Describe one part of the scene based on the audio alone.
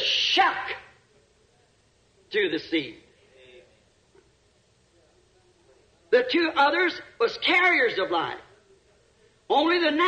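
A man preaches loudly with animation, heard through an old recording.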